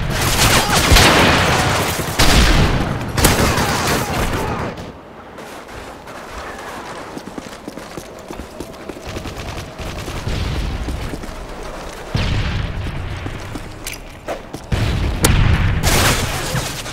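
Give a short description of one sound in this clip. Loud rifle shots boom and echo.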